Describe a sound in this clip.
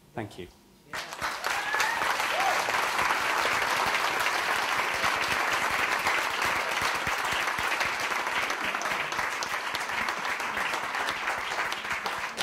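A large crowd applauds and cheers loudly in a big room.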